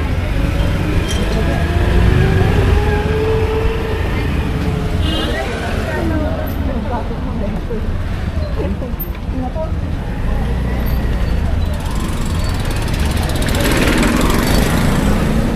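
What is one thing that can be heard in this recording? An auto rickshaw engine putters and revs nearby.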